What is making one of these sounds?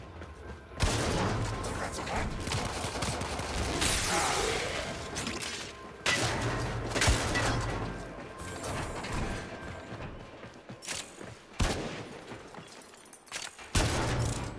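Loud booming impacts and blasts ring out.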